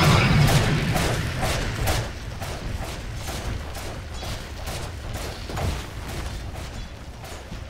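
Quick game hits and clicks tap repeatedly.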